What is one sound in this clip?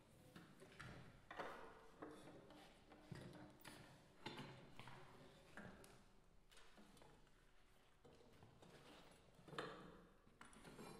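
A string quartet plays in a large echoing hall.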